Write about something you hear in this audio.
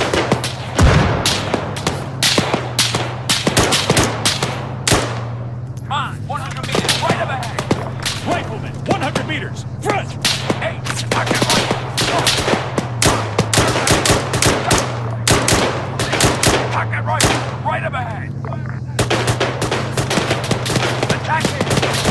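Rapid gunshots crack and echo outdoors.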